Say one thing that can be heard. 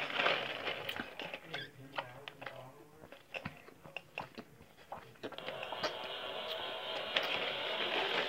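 A young girl sips a drink loudly through a straw.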